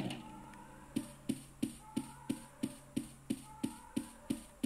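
Footsteps tap steadily through a small phone speaker.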